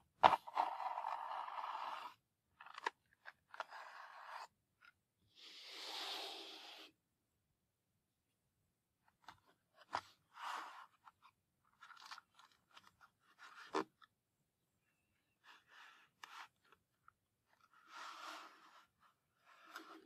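A small cardboard box rustles and scrapes as hands handle it.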